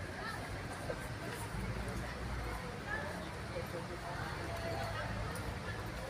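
A crowd of men and women chatter at a distance outdoors.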